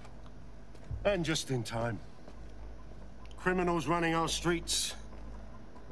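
A man speaks firmly and clearly, close by.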